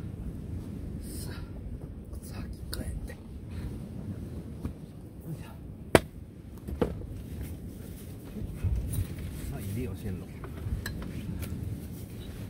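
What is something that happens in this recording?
Things knock and clatter as a man handles gear.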